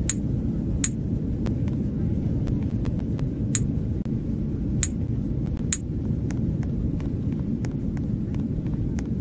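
A plane's engines hum low and steadily in a cabin.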